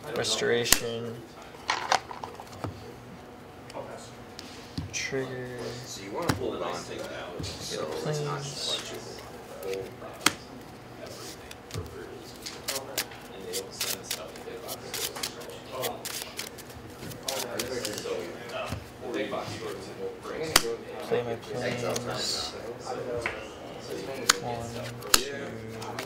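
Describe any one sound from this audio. Playing cards slap and tap softly on a table.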